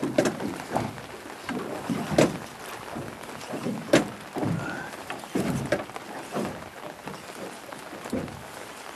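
A fishing reel whirs and clicks as its handle is cranked.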